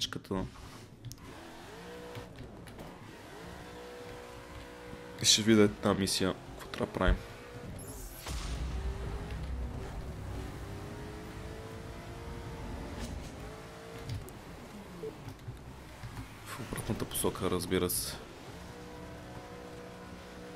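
A sports car engine revs up and down as it accelerates.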